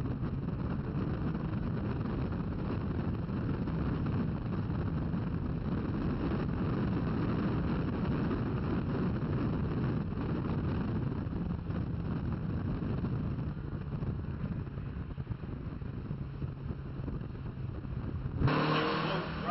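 Wind rushes past an open-top car.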